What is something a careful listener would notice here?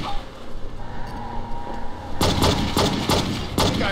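A car crashes into another car with a loud metallic bang.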